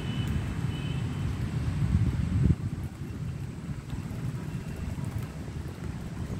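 Traffic rumbles steadily in the distance outdoors.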